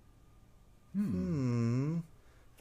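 A woman screams in fright.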